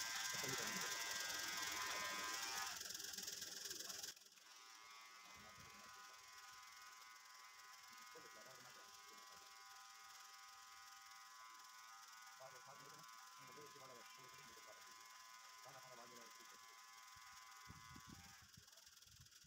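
Electric hair clippers buzz steadily close by.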